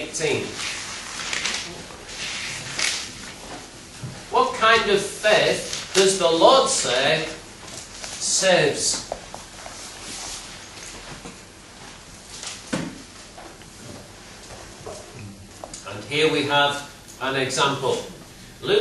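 A middle-aged man preaches with animation through a microphone in an echoing hall.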